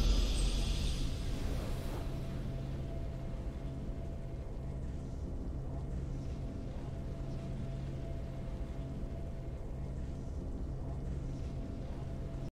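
A soft triumphant game tune plays quietly.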